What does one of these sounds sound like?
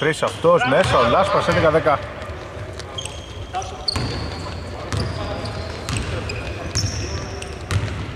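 A basketball is dribbled on a hardwood court.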